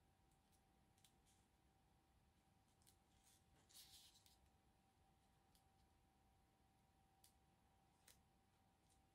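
Paper cards tap lightly on a table.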